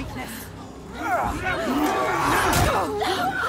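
A young woman grunts and cries out with effort close by.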